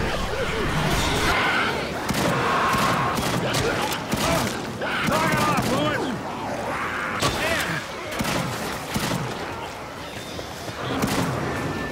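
A shotgun fires again and again.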